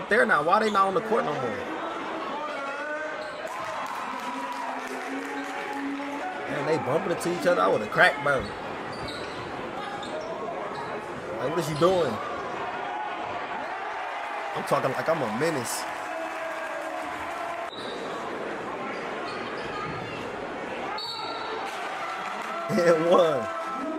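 A crowd cheers.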